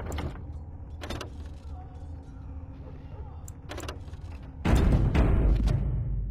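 Soft menu clicks sound.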